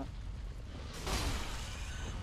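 Water splashes as a figure strikes through it.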